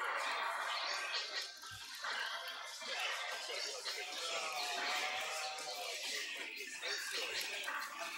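Men commentate with animation through microphones.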